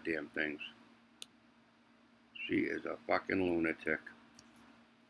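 A young woman speaks calmly, heard through a computer's speaker.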